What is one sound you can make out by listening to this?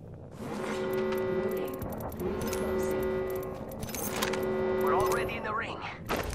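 Short game chimes ring repeatedly as items are picked up.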